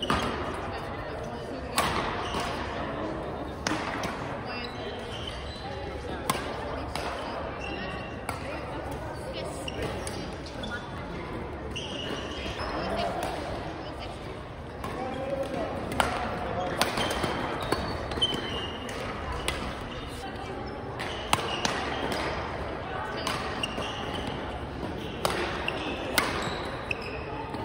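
Rackets smack shuttlecocks with sharp pops throughout.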